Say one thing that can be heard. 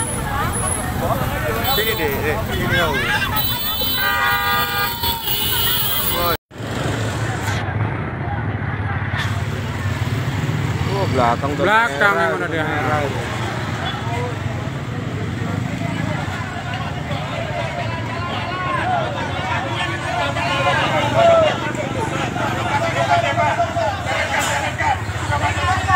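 A crowd of men and women talks and shouts excitedly nearby.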